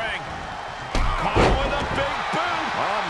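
A heavy thud lands on a wrestling ring mat.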